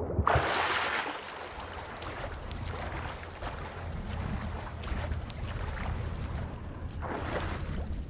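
Water sloshes and splashes with swimming strokes.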